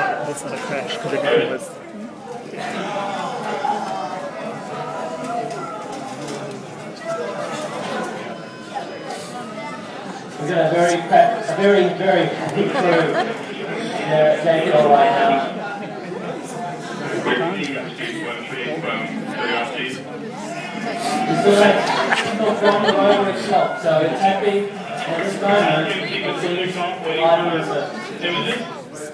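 A crowd cheers and chatters excitedly.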